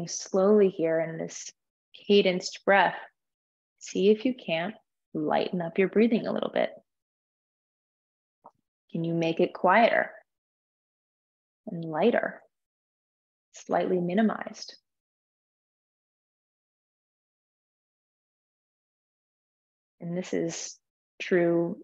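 A young woman speaks calmly and slowly in phrases with pauses, heard close through a microphone.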